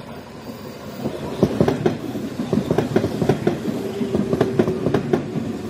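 Train wheels clatter rhythmically over the rail joints.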